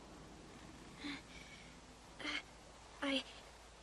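A young girl speaks quietly.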